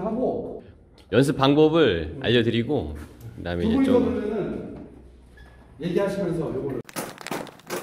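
Young men talk and shout with animation close by.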